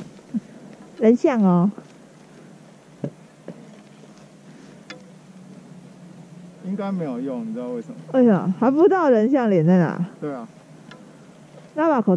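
A young woman talks animatedly close by, outdoors.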